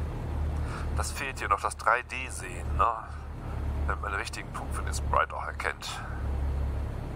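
A man speaks briefly into a headset microphone.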